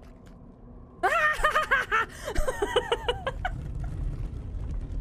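A young woman shrieks and laughs loudly close to a microphone.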